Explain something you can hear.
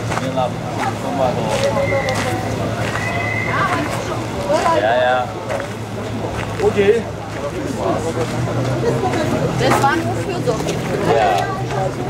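A crowd of men and women chatters nearby outdoors.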